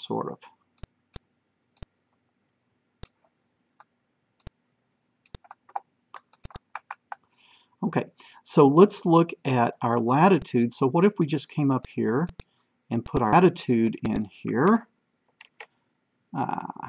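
A middle-aged man talks calmly close to a microphone.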